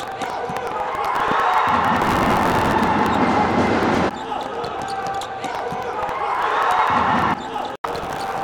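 Young men shout and cheer loudly in a large echoing hall.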